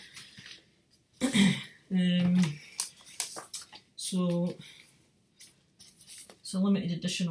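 A record sleeve rustles and slides in a woman's hands.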